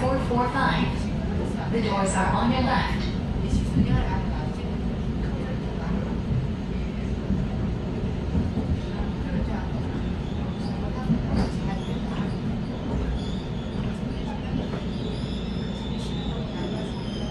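An electric commuter train rumbles along on rails, heard from inside a carriage.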